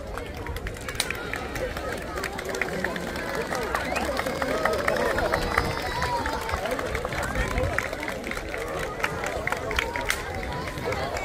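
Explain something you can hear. A large crowd claps.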